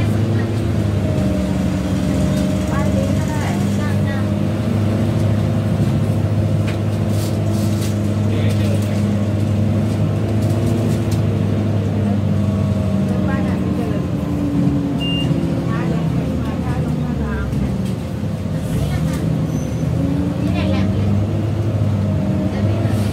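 A bus engine rumbles and hums steadily from inside the cab.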